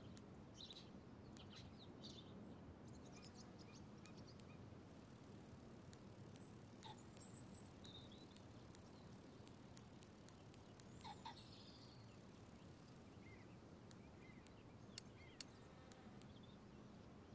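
Short soft clicks tick as a menu selection steps along.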